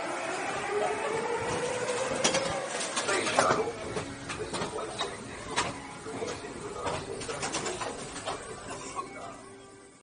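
A ride car rumbles and clatters along a track.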